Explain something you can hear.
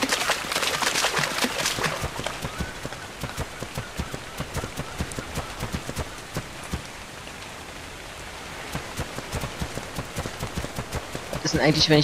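A large animal's heavy footsteps thud steadily on sand.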